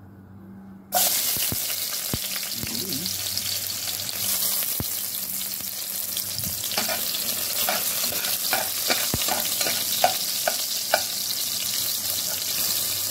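Garlic sizzles in hot oil.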